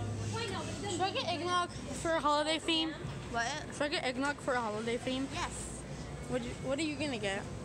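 A young girl talks animatedly close to the microphone.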